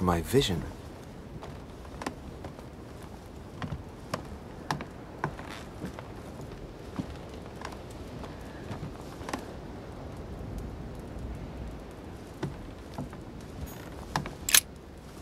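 Footsteps tread on a wooden floor.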